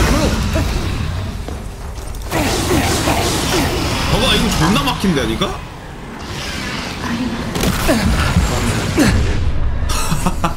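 A giant spider monster screeches and roars.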